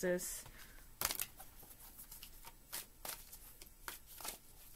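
Cards rustle and click as they are shuffled and handled.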